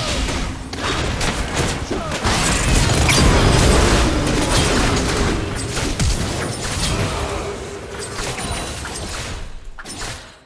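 Magic blasts and hits crackle and boom in a fast game battle.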